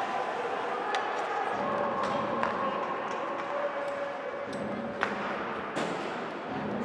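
Hockey sticks click against the puck.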